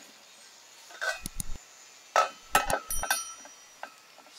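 A lid clanks onto a metal pot.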